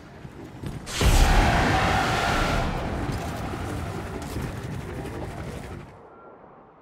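A deep rushing whoosh swells loudly and slowly fades.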